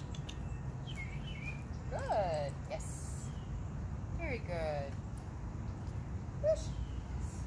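A young woman talks softly to dogs nearby.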